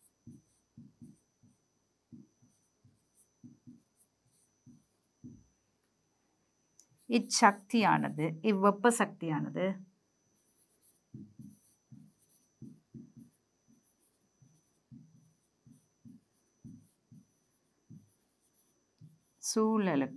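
A marker taps and scratches on a whiteboard.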